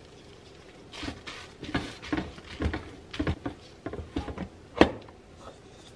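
A wooden paddle scrapes and taps against a metal pot.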